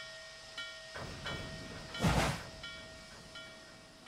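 A steam locomotive hisses out steam.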